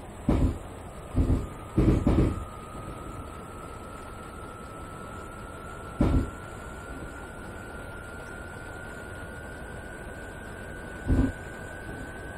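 Train wheels thump heavily over rail joints.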